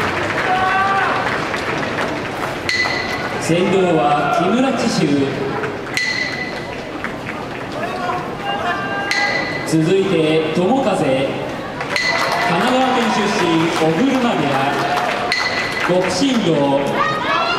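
A crowd murmurs in the background.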